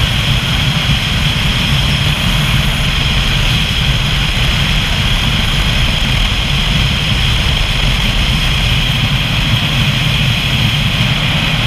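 Wind roars loudly across a moving motorcycle.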